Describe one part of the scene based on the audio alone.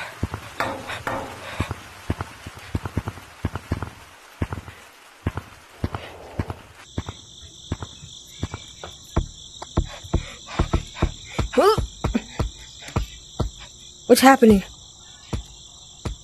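Quick footsteps patter across hard ground.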